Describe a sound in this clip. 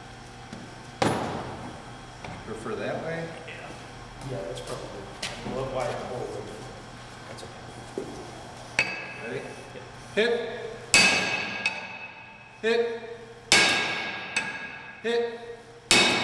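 A metal pry bar clanks against wood, each hit ringing briefly.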